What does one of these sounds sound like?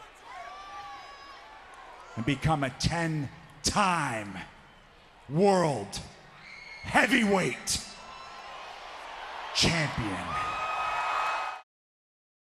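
A large crowd cheers and roars in the arena.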